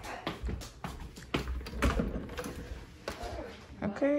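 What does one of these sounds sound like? A door latch clicks as a door is opened.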